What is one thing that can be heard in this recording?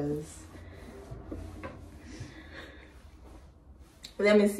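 A young woman speaks close by, softly.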